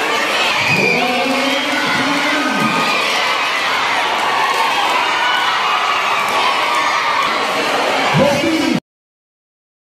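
A large crowd chatters and cheers loudly in an echoing space.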